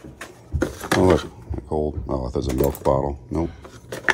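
Small objects clink and rattle as a hand rummages through a box.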